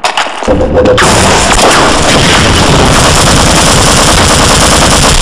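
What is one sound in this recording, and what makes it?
A rifle fires rapid, loud bursts.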